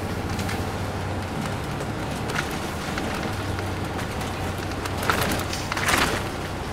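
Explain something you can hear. A bus engine hums steadily from inside.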